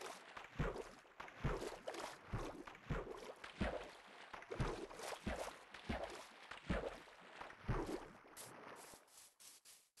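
Water splashes rhythmically with each swimming stroke.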